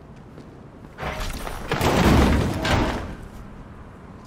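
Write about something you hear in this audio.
A body thuds into a metal bin with a hollow clang.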